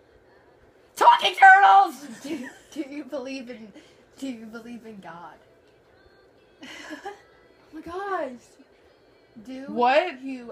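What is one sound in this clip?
A teenage girl talks with animation close by.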